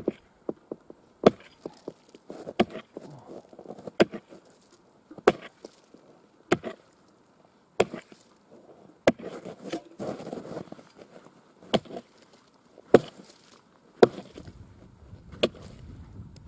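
An axe chops sharply into ice at a steady pace.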